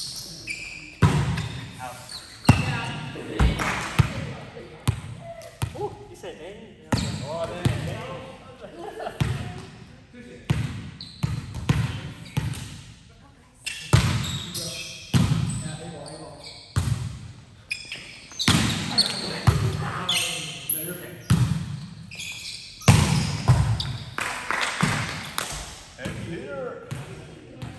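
A volleyball is struck with sharp slaps, echoing in a large hall.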